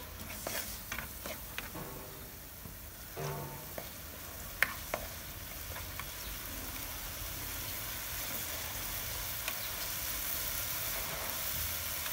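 A spatula scrapes and taps against a frying pan.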